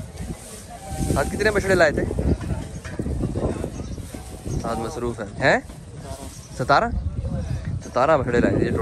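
Men talk loudly nearby.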